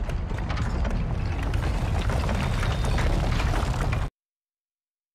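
A huge machine rumbles and grinds loudly.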